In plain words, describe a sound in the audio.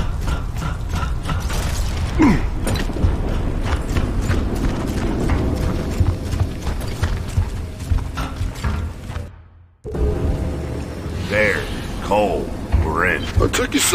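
Heavy boots thud in slow steps on a hard floor.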